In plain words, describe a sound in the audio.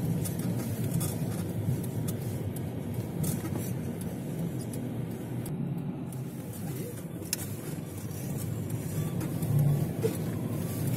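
Tyres crunch and rumble over snowy road.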